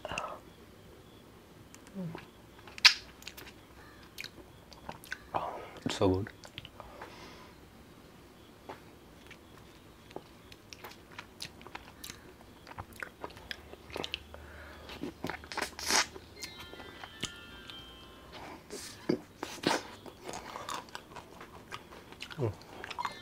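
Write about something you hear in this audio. A man slurps and licks an ice lolly with wet, sticky mouth sounds.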